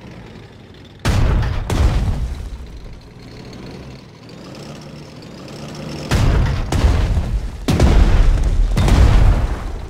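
Explosions boom heavily during a battle.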